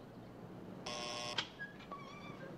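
A doorbell buzzer rings briefly.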